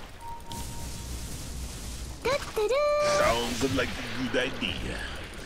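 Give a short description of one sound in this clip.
Fantasy battle effects crackle and whoosh as spells are cast.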